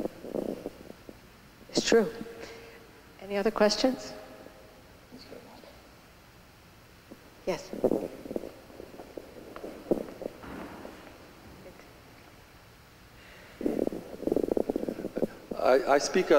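An elderly man speaks slowly and calmly through a microphone in a large echoing hall.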